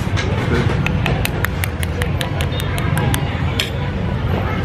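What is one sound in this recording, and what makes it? A spoon taps repeatedly against an eggshell.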